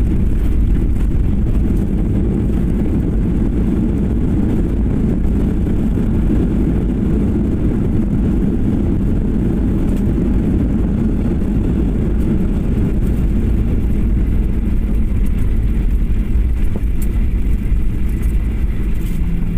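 A jet airliner's engines roar loudly as the plane rolls along the runway after landing.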